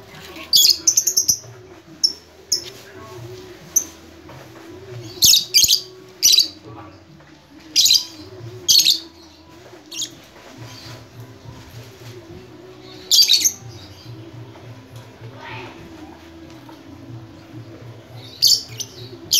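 Small parrots screech in short, sharp bursts close by.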